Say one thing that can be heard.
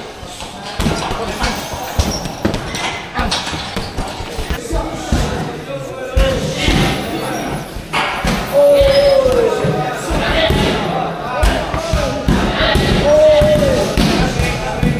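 Bare feet shuffle and slap on a padded floor.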